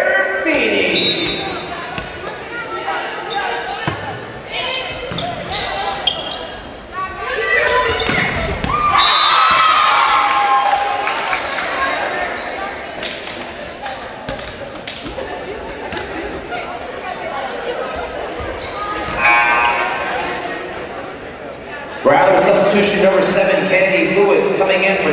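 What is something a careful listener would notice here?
Young women players shout to each other on the court.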